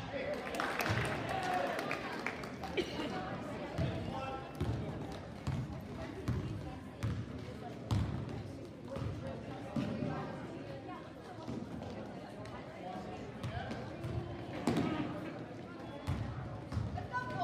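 Spectators call out and cheer from the sidelines.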